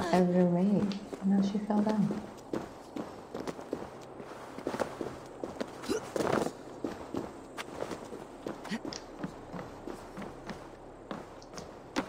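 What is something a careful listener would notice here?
Footsteps scuff and thud on stone and wooden boards.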